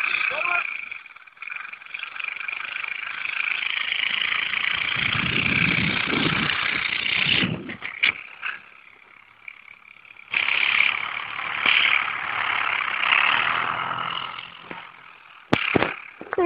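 A quad bike engine buzzes and revs in the distance.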